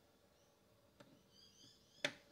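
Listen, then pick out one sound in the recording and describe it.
A turntable's tone arm clicks as it is moved.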